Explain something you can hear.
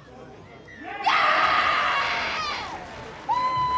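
A crowd cheers and applauds loudly outdoors.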